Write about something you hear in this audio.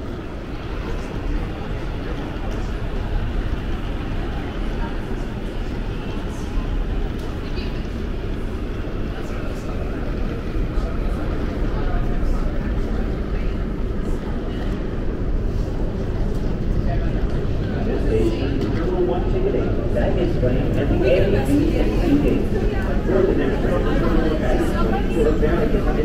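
A low rumble hums steadily through a large echoing hall.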